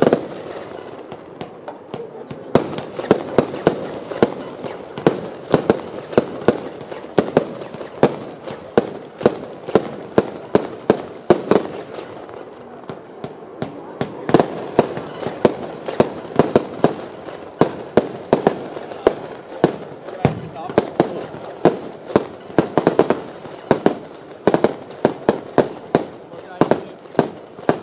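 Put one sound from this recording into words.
A firework cake launches shots in a rapid series of thumps.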